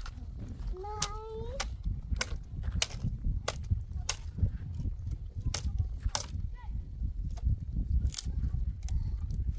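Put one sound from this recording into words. Dry twigs snap and crack as they are broken by hand.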